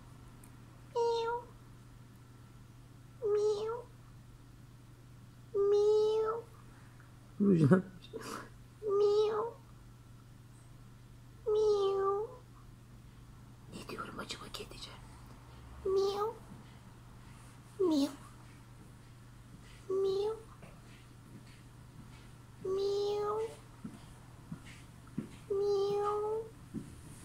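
A kitten meows loudly and repeatedly, close by.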